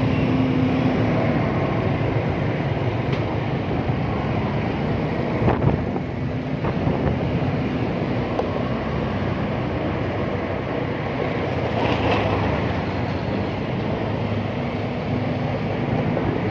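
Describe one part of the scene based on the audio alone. Other motorbikes putter along nearby.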